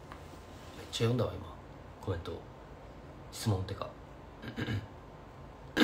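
A young man speaks calmly and close to a microphone, in short bursts.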